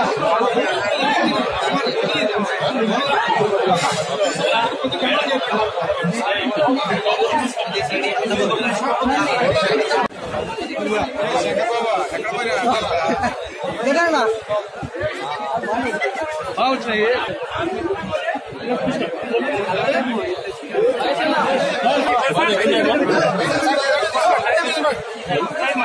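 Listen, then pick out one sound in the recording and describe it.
A large crowd of men and women shouts and chatters loudly close by.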